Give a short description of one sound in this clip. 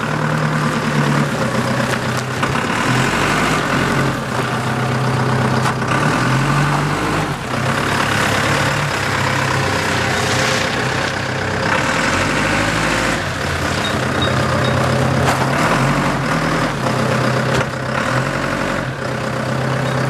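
Tyres crunch on gravel as a forklift drives.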